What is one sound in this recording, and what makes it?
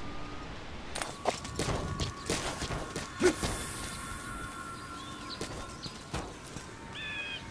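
Footsteps run across hard stone.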